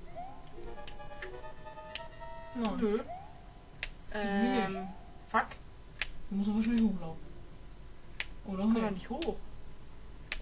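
Short electronic blips from a video game sound now and then.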